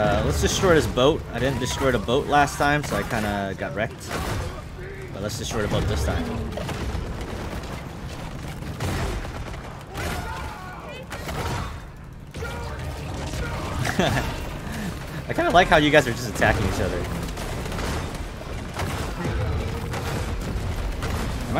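Explosions boom and crash.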